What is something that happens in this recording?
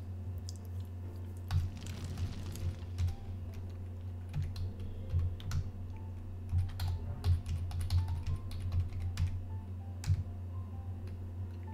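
Short game sound effects click and chime.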